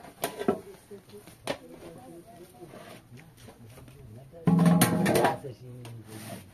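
A metal tray clangs against a metal basin.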